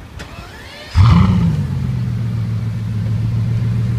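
A sports car engine starts with a sudden roar and then idles with a deep rumble.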